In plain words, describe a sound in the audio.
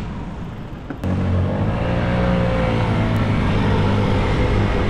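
A motor scooter engine hums close by.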